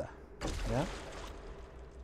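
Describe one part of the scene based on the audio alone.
A fire crackles in a barrel.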